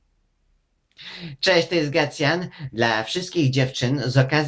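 A middle-aged man speaks cheerfully and with animation, close to the microphone.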